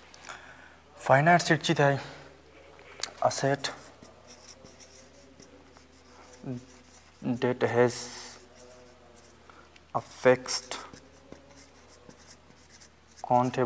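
A man speaks calmly and slowly, as if lecturing.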